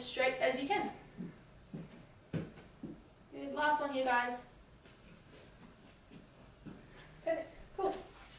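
Hands and feet thump softly on a hard floor.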